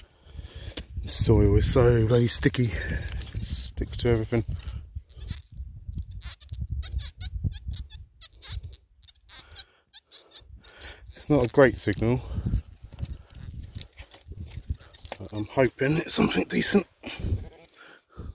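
A metal detector beeps and warbles as it sweeps over the ground.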